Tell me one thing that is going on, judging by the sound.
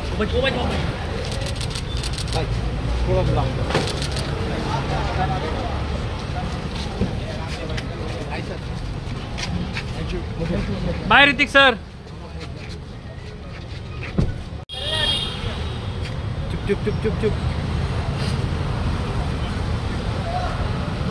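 A crowd of men chatter and call out nearby, outdoors.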